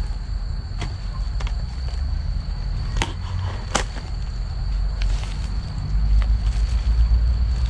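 Plastic sheeting crinkles and crackles as a trap is handled.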